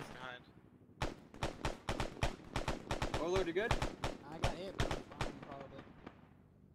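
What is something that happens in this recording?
Rifles fire in rapid bursts of gunshots.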